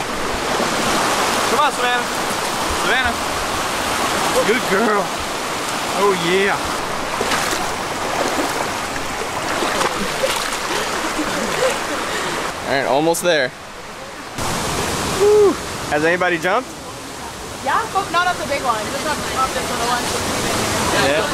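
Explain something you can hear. A shallow stream rushes and splashes over rocks.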